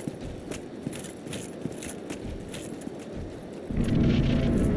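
Armoured footsteps clank quickly.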